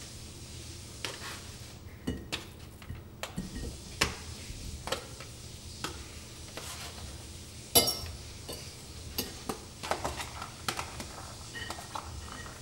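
A fork scrapes and clicks against a plastic food tray.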